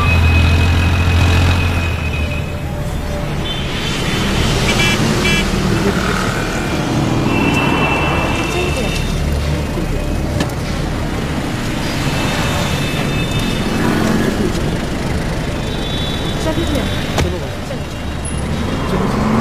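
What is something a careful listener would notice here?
Traffic rumbles along a busy road outdoors.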